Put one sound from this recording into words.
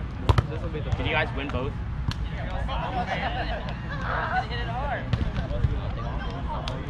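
Young men and women call out to each other across an open field.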